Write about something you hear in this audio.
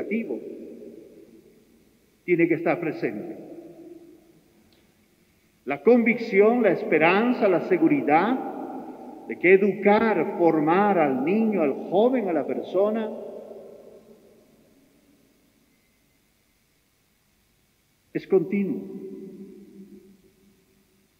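A middle-aged man speaks slowly and solemnly through a microphone, echoing in a large reverberant hall.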